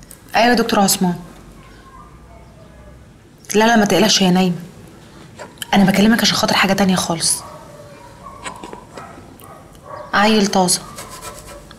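A woman speaks on a phone in short, tense bursts.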